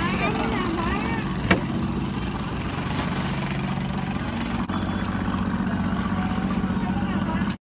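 A boat engine hums steadily nearby.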